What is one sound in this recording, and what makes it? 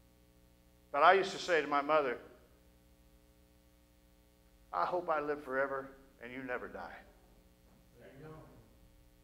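A middle-aged man speaks with emphasis through a microphone, with pauses between phrases.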